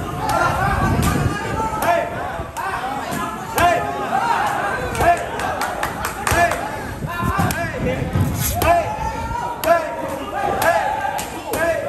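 Boxing gloves smack against pads.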